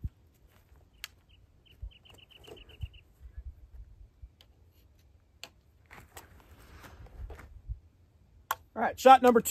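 A rifle's action clicks and clacks.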